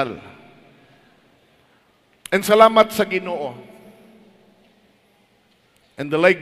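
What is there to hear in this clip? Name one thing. A middle-aged man speaks emphatically through a microphone and loudspeakers in a reverberant hall.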